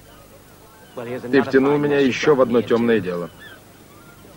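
A man speaks up close with animation.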